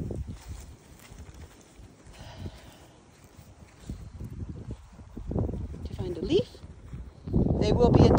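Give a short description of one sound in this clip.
A dog's paws patter across grass.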